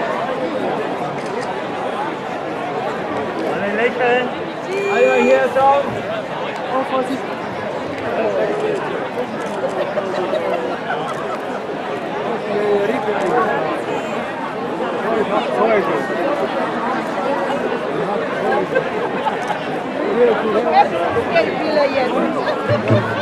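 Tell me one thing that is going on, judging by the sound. A large crowd of men and women chatters outdoors.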